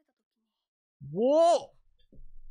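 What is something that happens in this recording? A young man exclaims in surprise close to a microphone, his voice rising and falling.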